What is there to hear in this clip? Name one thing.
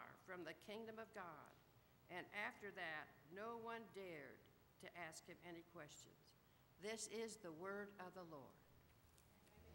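An elderly woman reads aloud calmly through a microphone in an echoing hall.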